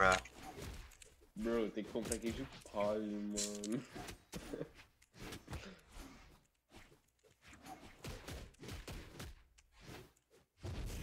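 Video game fight sounds of quick hits and whooshes come in short bursts.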